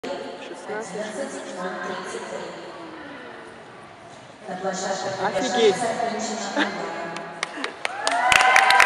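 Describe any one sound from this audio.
Several adults chat quietly in a large echoing hall.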